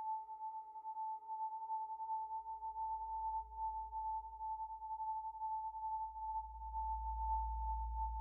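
A deep synthesizer bass drone slowly swells louder.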